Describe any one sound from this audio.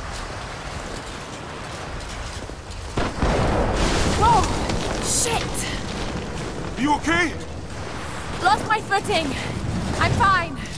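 Strong wind howls across an open mountainside.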